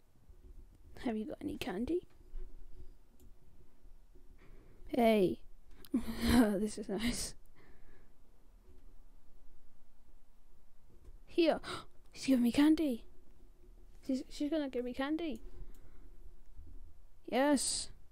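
A boy talks with animation into a headset microphone, close by.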